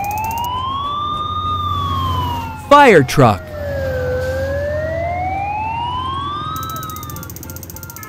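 A siren wails, slowly rising and falling.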